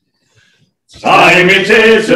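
A group of older men sing loudly together in close harmony.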